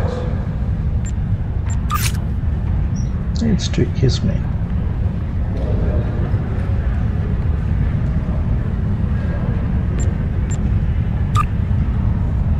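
Game interface clicks and beeps sound.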